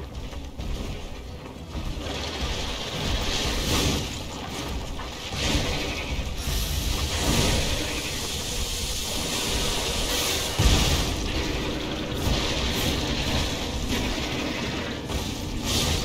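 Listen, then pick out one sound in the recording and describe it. A heavy weapon swings and strikes with loud metallic clashes.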